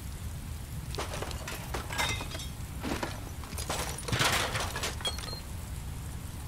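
Glass bottles clink and rattle.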